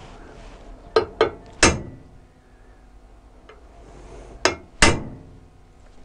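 A hammer taps a metal punch against a steel tube with sharp knocks.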